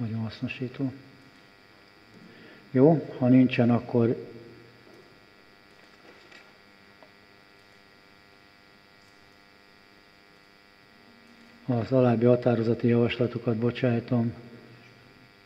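An elderly man speaks calmly into a microphone in bursts, with long pauses.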